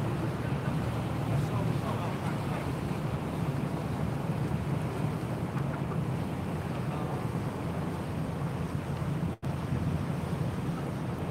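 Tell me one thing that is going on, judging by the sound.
Wind blows hard outdoors, rumbling against the microphone.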